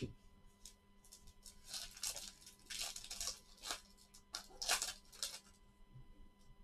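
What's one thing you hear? Paper card packs rustle and crinkle as gloved hands handle them.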